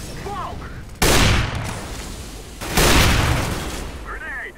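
Gunshots ring out close by, loud and sudden.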